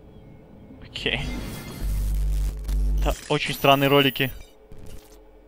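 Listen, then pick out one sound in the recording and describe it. A distorted electronic glitch noise buzzes and warbles loudly.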